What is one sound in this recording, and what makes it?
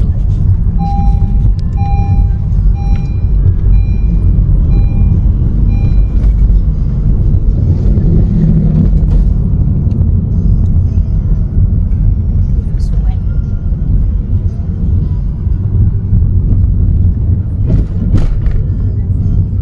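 Tyres rumble over a road surface.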